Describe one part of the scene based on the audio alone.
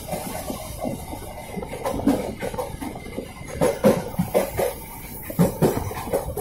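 Train wheels knock over rail joints.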